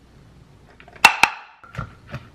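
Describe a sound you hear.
A plastic container knocks against a cutting board.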